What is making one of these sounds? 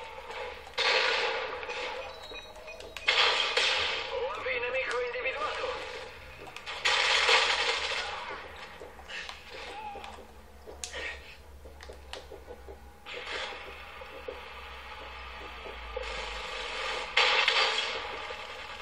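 Gunfire and explosions from a video game blast in loud bursts through a television speaker.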